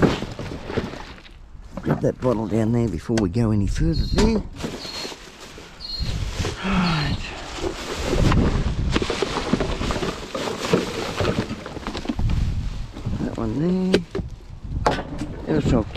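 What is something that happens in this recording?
Cardboard boxes scrape and thud as rubbish is shifted.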